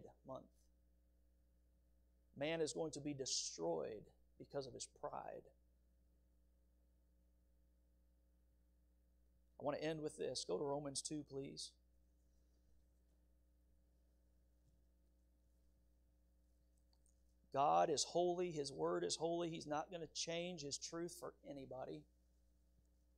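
A man speaks calmly into a microphone, pausing often.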